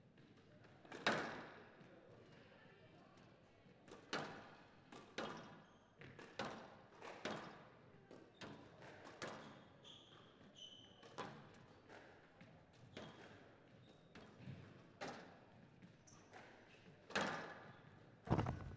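A squash ball smacks hard against the walls, echoing in a large hall.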